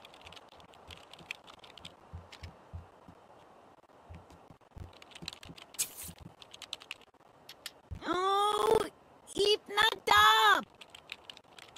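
Keys click rapidly on a keyboard.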